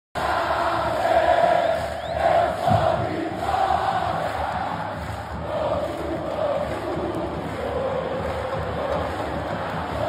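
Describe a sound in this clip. A large crowd chants and cheers loudly.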